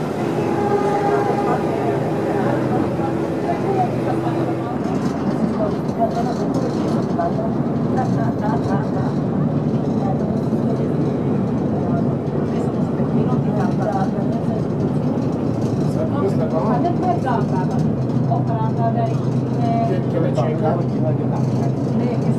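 Water washes along a ferry's hull.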